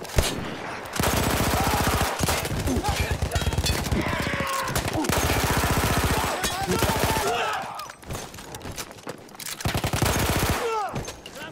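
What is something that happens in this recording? A machine gun fires in rapid bursts close by.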